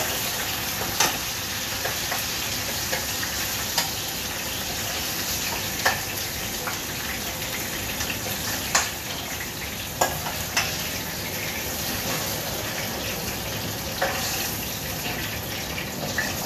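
A utensil clinks against a pan.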